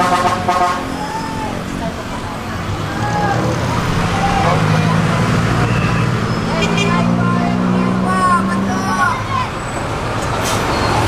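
Traffic passes by outdoors on the street.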